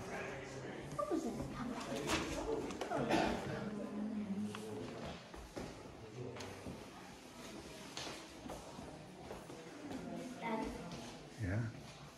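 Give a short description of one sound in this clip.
Young children talk nearby.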